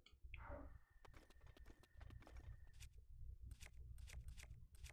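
Quick electronic clicks and pickup sounds tick in rapid bursts.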